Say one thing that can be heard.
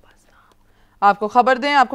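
A woman speaks into several microphones.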